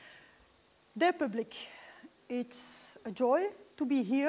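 A woman speaks calmly in a large room.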